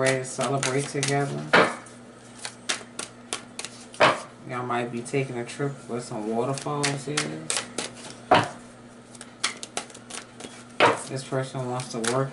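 Cards are shuffled with soft slapping and riffling.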